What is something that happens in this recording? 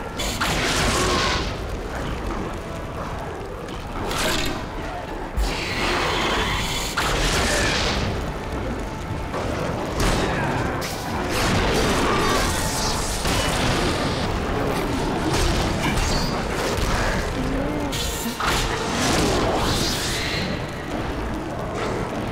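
Arrows whoosh through the air in quick bursts.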